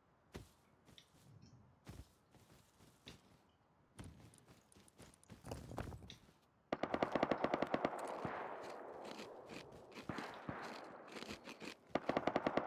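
Footsteps rustle quickly through grass and brush.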